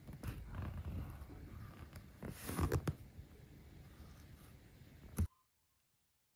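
A metal point scratches and scrapes along leather.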